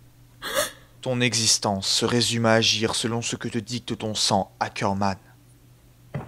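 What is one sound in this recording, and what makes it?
A young man speaks coldly and steadily.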